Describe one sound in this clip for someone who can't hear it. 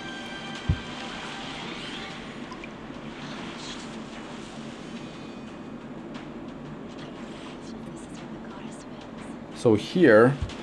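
A magical spell whooshes and shimmers.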